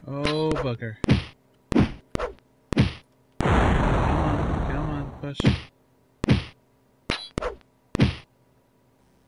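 A sword swishes and strikes with sharp hits.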